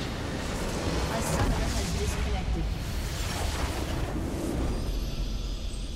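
A large structure explodes with a deep rumble.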